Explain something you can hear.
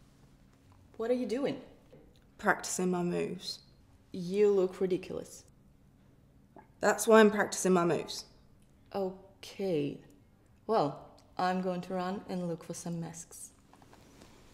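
A young woman speaks with animation and close by.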